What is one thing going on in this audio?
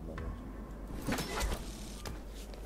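Hands grab onto a ledge with a heavy thud.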